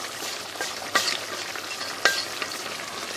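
A wooden spoon knocks against a pot.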